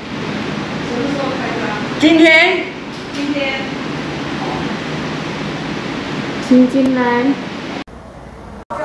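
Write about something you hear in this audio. An elderly woman talks close by.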